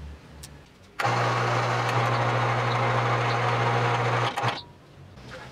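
An electric hoist motor hums while lifting.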